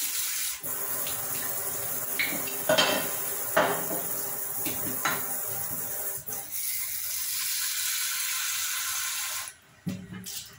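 Water runs from a tap and splashes steadily into a metal sink.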